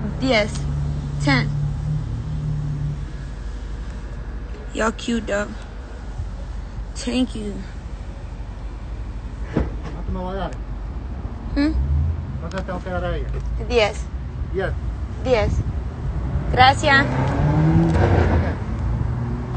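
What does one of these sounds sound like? A young woman talks casually and close by into a phone's microphone.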